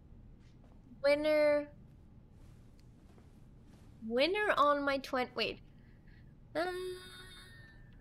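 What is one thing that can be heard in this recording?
A young woman talks animatedly into a close microphone, in short bursts.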